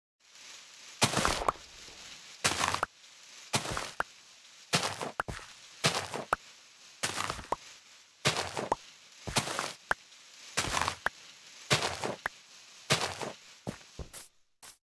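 Dirt blocks crunch as they are dug out, one after another, at a steady pace.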